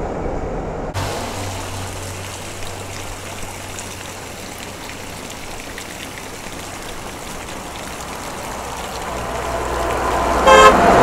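Water pours steadily from pipes and splashes onto stone.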